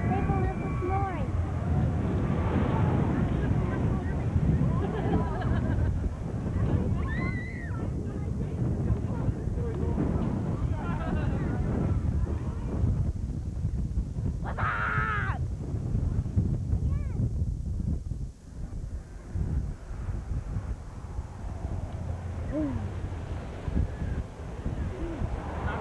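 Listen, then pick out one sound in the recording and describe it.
People chatter outdoors.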